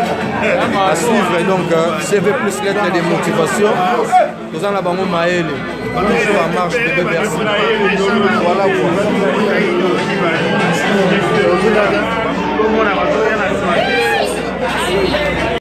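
A man talks animatedly close to a phone microphone.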